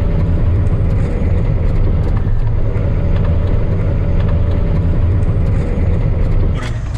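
Loose gear rattles and knocks inside the vehicle.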